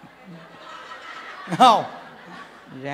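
A man laughs into a microphone.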